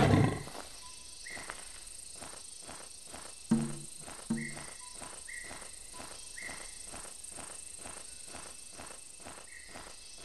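A lion's paws pad softly over the ground.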